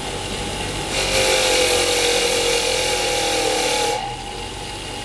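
A wire wheel grinds harshly against metal.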